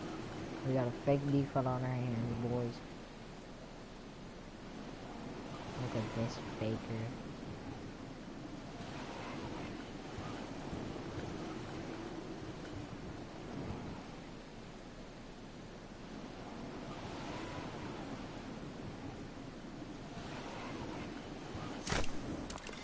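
Wind rushes steadily past.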